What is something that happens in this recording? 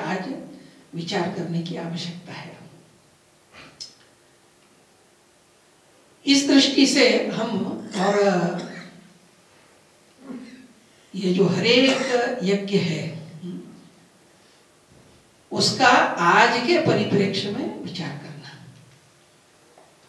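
An elderly man speaks calmly into a microphone, in bursts with pauses.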